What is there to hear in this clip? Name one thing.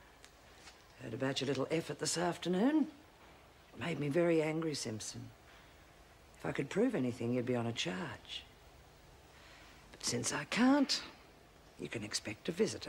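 A middle-aged woman speaks firmly and clearly nearby.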